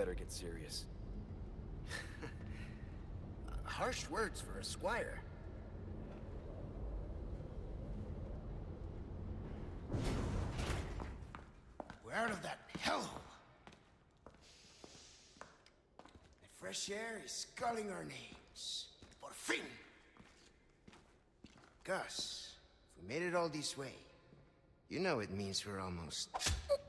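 A man speaks casually and confidently, close by.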